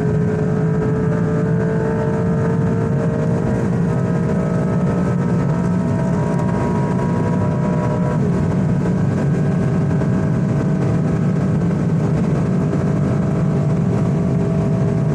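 Wind and road noise rush loudly around a speeding car.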